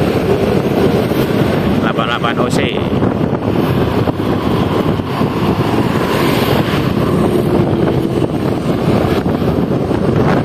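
A bus engine rumbles close by as it drives along a road.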